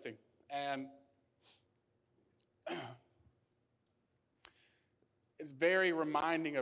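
A young man speaks earnestly into a microphone, pausing between phrases.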